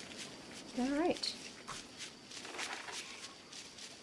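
A map rustles as it is unfolded.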